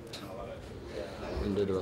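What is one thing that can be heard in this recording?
A second young man speaks calmly close to a microphone.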